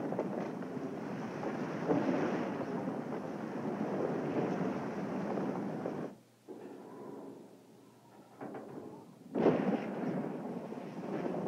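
Wind roars and gusts across open snowy slopes.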